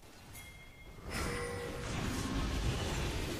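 Weapons clash and spells burst in a noisy fight.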